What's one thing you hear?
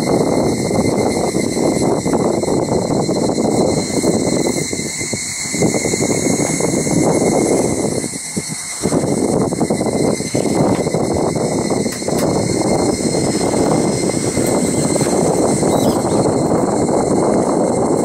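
Wind buffets loudly against an open window of a moving cable car.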